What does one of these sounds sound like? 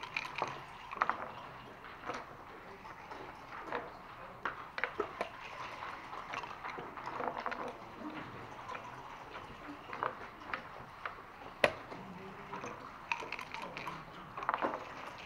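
Backgammon checkers click and clack against a wooden board.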